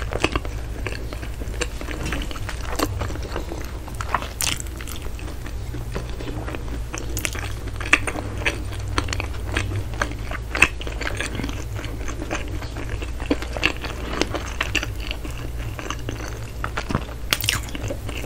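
A woman chews food wetly and loudly close to a microphone.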